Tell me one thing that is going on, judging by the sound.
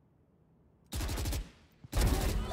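A gun fires a quick burst of shots.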